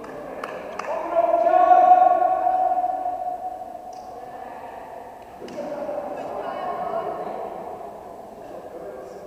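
Young women shout and call out loudly in a large echoing hall.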